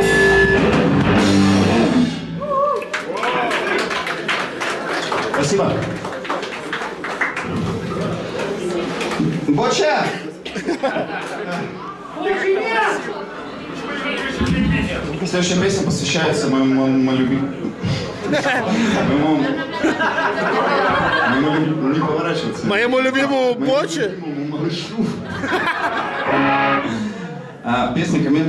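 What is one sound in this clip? A young man sings loudly into a microphone over a loudspeaker system.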